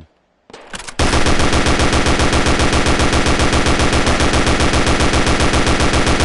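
An automatic rifle fires in loud rapid bursts.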